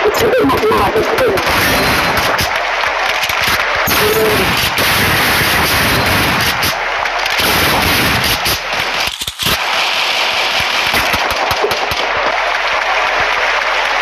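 Gunshots rattle in quick bursts.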